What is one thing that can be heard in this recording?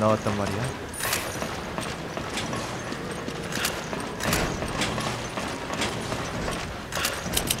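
Footsteps thud on metal stairs and a hard floor.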